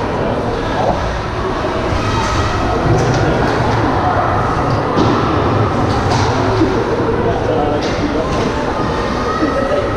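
A crowd murmurs and calls out in a large echoing rink.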